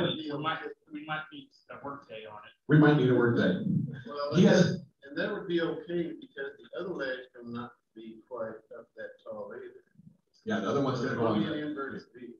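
A man talks steadily, heard over an online call.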